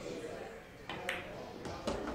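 A cue strikes a pool ball with a sharp knock.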